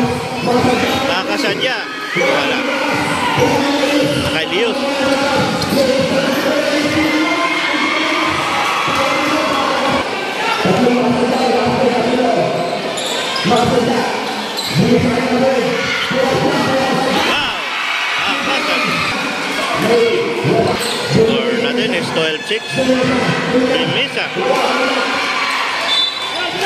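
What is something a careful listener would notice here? A crowd of spectators cheers and shouts loudly in an echoing gym.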